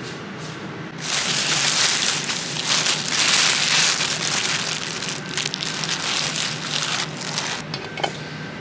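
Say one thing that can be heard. A plastic bag crinkles and rustles loudly as it is handled.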